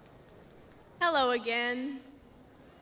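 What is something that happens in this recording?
A young woman speaks loudly through a microphone and loudspeaker.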